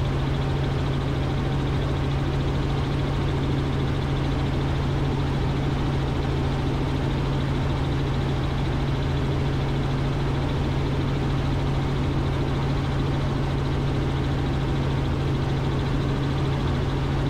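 A helicopter's engine and rotor drone loudly and steadily from inside the cabin.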